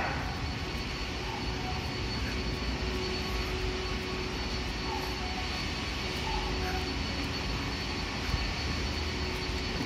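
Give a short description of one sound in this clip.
A stopped train hums steadily with a low rumble and a faint high whine.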